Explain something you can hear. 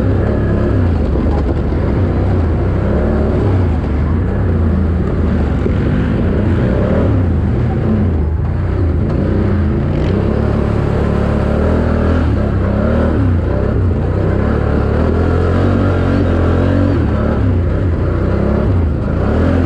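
Knobby tyres crunch over dirt and leaves.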